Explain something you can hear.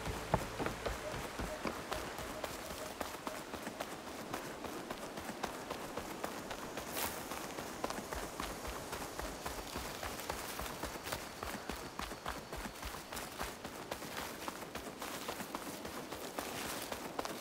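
Footsteps patter quickly on a dirt path.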